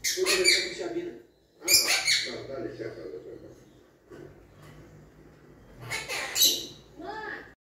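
A small parrot squawks and chirps close by.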